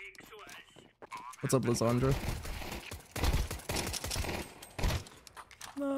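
A gun fires several sharp shots in quick bursts.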